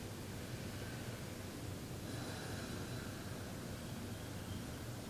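A man hums a low, steady tone close by.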